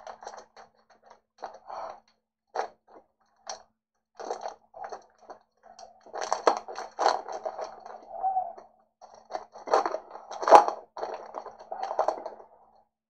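Hands tear open a crinkling foil card pack.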